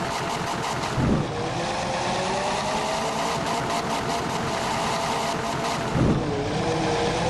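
A bus engine shifts gears with a brief thump.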